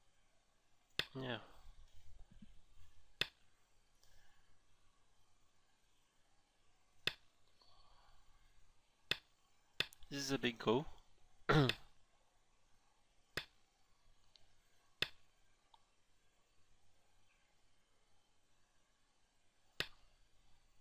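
Game stones click sharply onto a board, one at a time.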